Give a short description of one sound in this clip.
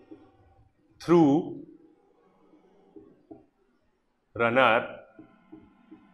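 A man speaks loudly in short bursts, close to the microphone.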